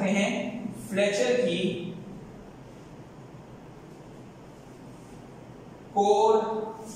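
A man speaks calmly, like a lecturer addressing a room.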